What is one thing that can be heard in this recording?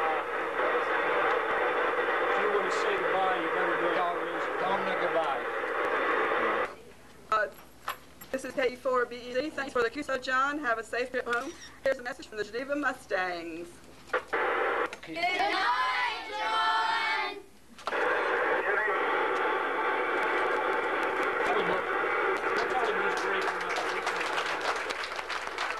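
Children chatter in a noisy room.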